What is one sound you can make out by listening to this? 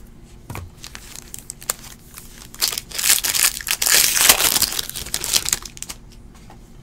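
A foil wrapper crinkles and tears as it is pulled open.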